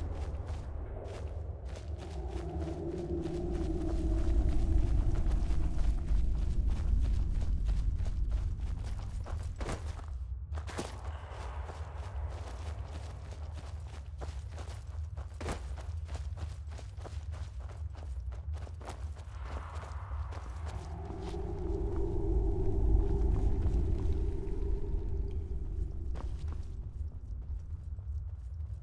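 Wind howls and gusts, rising and falling.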